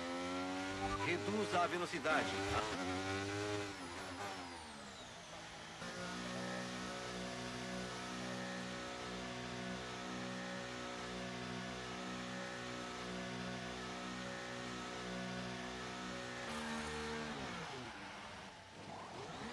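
A racing car engine whines loudly, dropping in pitch as it slows, then holds a steady buzzing hum before winding down.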